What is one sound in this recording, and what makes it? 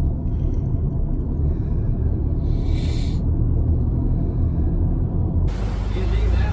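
A car engine hums with a low road rumble from inside the vehicle.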